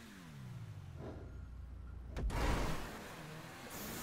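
A car lands with a thud after a jump.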